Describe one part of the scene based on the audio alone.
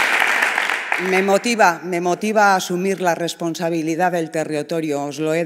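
A middle-aged woman speaks calmly into a microphone over loudspeakers.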